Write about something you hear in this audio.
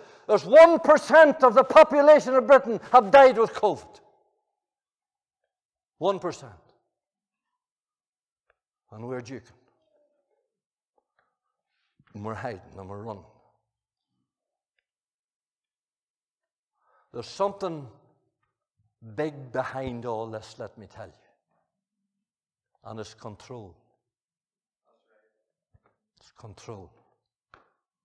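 An elderly man speaks through a microphone, emphatically at first, then in short phrases with long pauses.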